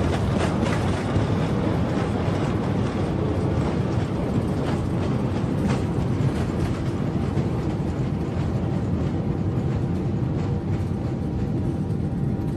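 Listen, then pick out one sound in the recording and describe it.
Jet engines roar loudly and steadily.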